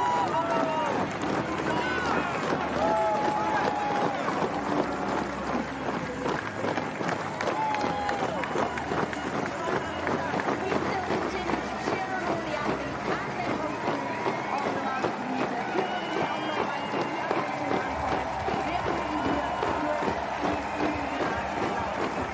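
A large crowd claps.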